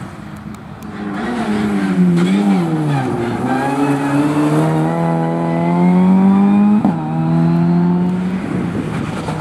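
A rally car engine roars loudly, its pitch climbing as it accelerates.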